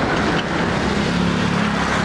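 A small motorcycle approaches on a wet road.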